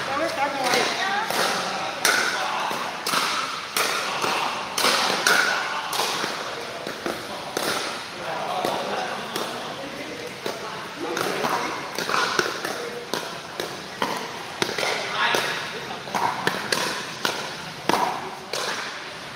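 Men call out and talk during play in an echoing indoor hall.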